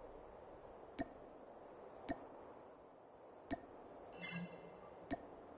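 Game menu buttons click sharply.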